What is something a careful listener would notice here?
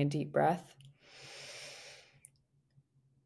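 A young woman breathes in deeply near a microphone.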